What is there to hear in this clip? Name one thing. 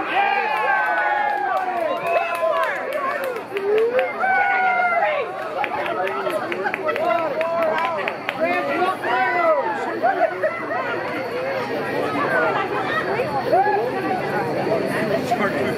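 A crowd of adults chatters close by outdoors.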